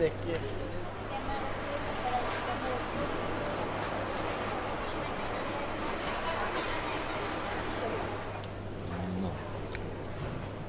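A middle-aged woman talks nearby in a friendly way.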